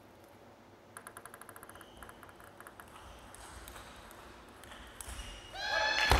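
A table tennis ball bounces lightly on a table several times.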